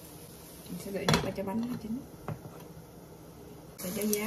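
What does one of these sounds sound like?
A glass lid clinks onto a frying pan.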